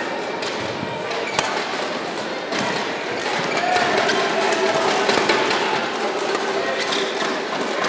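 A racket strikes a shuttlecock with sharp smacks.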